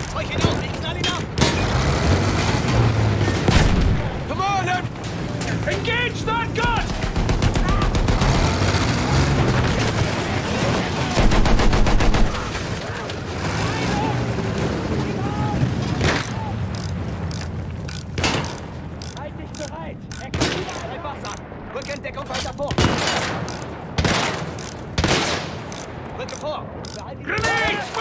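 Guns fire in sharp, repeated bursts.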